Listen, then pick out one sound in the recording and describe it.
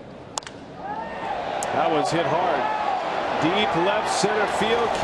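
A stadium crowd cheers.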